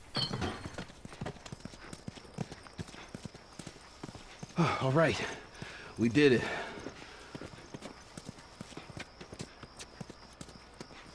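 Footsteps crunch steadily over rubble and grass.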